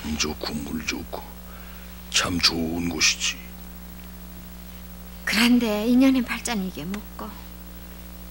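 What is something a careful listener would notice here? A middle-aged man talks nearby in short, rough bursts.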